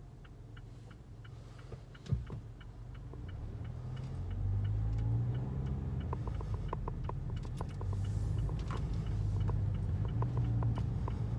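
A car engine hums low from inside the car, growing louder as the car pulls away.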